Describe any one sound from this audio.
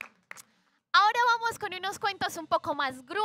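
A young woman sings loudly close by.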